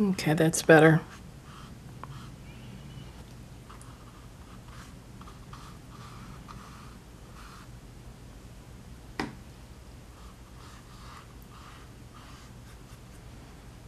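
A paintbrush softly brushes and taps on paper.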